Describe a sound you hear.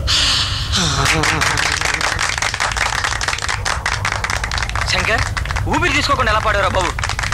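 Several men laugh and shout with excitement.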